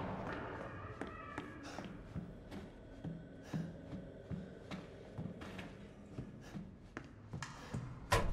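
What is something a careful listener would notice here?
Slow footsteps tap on a hard floor.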